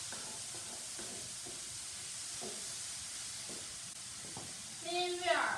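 A spatula scrapes a frying pan.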